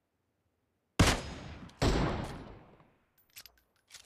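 A sniper rifle fires loud shots that echo away.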